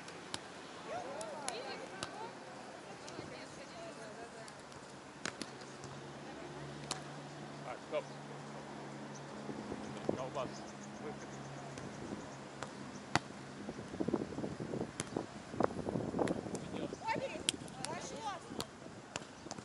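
A ball thuds off players' hands and arms now and then.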